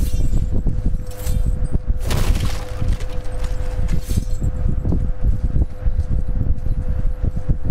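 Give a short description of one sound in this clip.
Footsteps crunch through grass and undergrowth.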